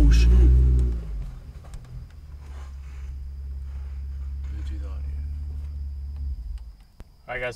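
A car engine idles with a low rumble, then stops.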